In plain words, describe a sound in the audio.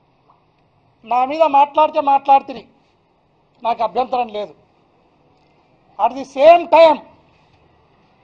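A middle-aged man speaks forcefully and emphatically into a microphone, in short bursts.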